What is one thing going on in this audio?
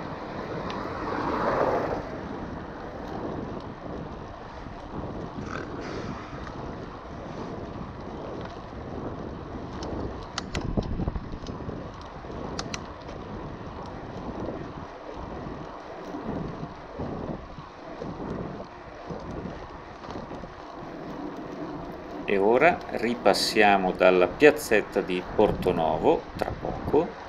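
Wind rushes past a moving bicycle.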